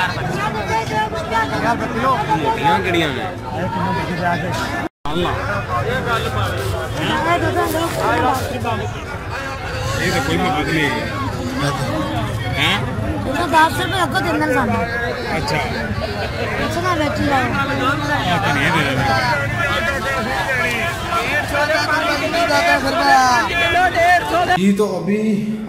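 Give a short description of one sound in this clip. A crowd of men chatter all around outdoors.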